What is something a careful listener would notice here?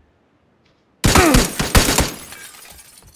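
Gunshots crack loudly in a rapid burst.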